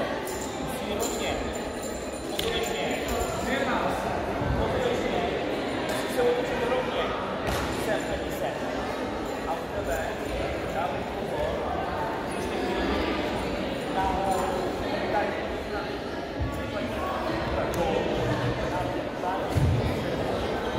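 Bare feet thump and slide on a wooden floor.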